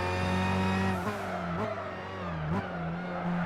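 A racing car engine drops in pitch as the car brakes hard.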